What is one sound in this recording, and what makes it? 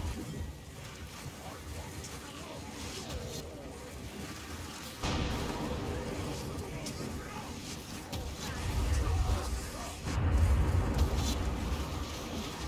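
Electric lightning crackles and zaps.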